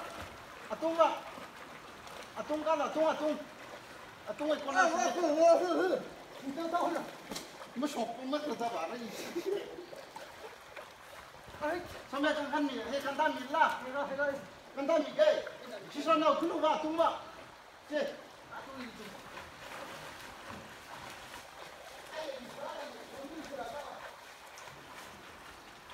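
Water splashes softly around swimmers.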